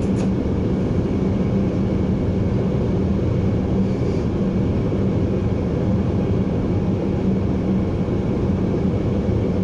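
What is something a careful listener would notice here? A train's engine hums low and steady.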